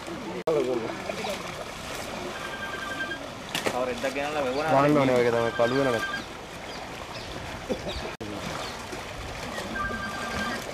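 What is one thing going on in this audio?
Water splashes as several people wade through it.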